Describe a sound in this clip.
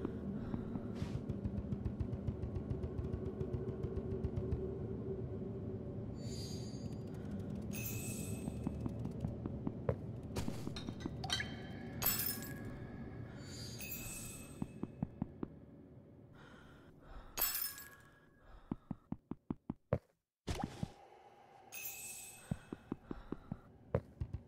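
Soft, gentle game music plays.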